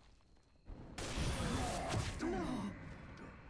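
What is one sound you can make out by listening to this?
A loud magic blast explodes.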